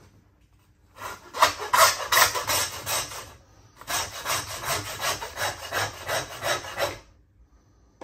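A hand saw rasps back and forth through bone.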